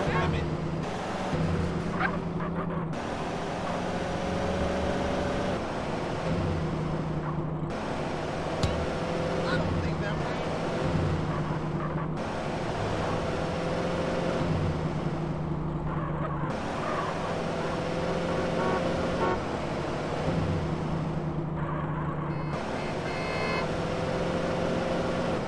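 A car engine hums steadily and revs as the car drives along.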